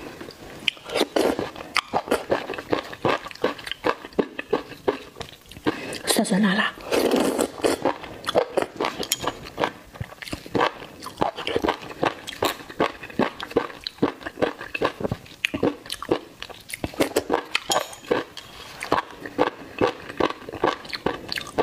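A woman chews wet, squelchy food close up.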